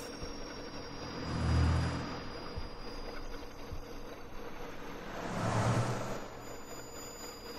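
A broomstick whooshes through the air.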